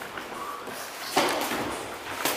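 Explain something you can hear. A kick thumps against a raised guard.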